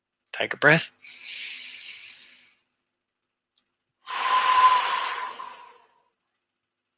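A man breathes out heavily into a headset microphone.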